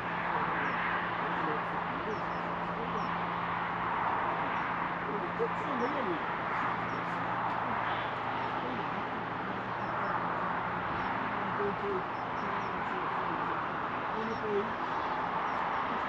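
Wind blows steadily across open ground.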